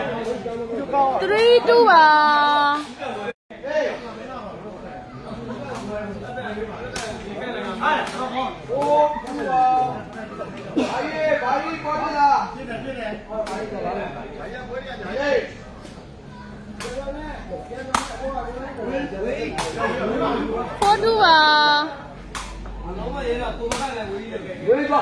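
A sepak takraw ball is kicked with sharp smacks.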